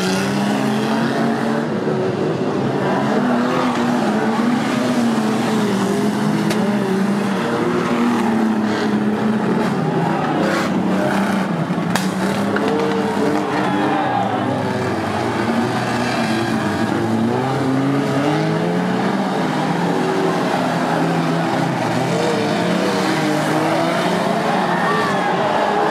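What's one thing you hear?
Car engines rev and roar loudly.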